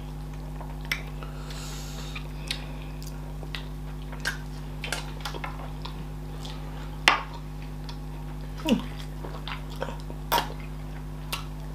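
A woman chews and bites into fried chicken close to a microphone.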